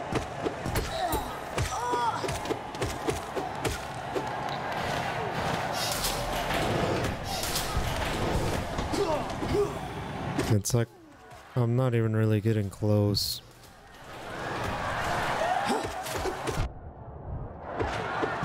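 Game sounds of slashing and impacts play.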